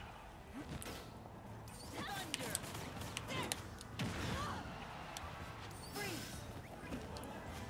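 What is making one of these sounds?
Sharp video game hits and zaps crack in quick bursts.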